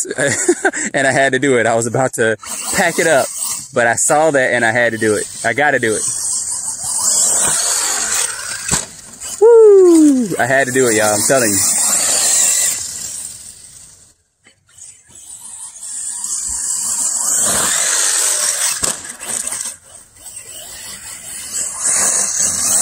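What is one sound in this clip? A small electric motor whines as a toy car races over grass.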